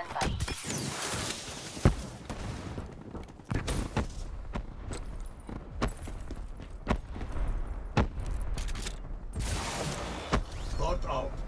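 Gunshots fire sharply, one at a time, with a short echo.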